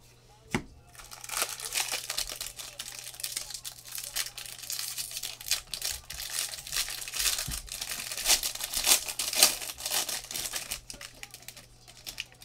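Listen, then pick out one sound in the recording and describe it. Plastic wrapping crinkles and rustles as hands tear open a pack.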